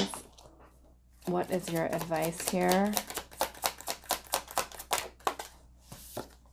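Playing cards are shuffled with quick, soft riffling flicks.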